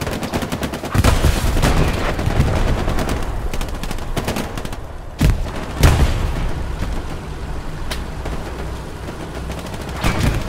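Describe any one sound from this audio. A tank engine rumbles nearby.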